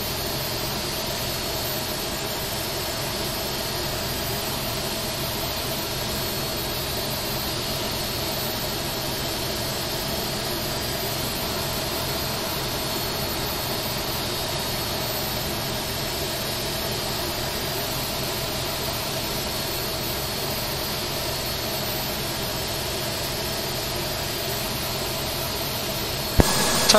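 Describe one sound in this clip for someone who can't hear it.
A jet airliner's engines whine steadily at idle close by.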